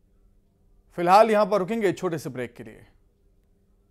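A young man speaks clearly and with animation into a microphone.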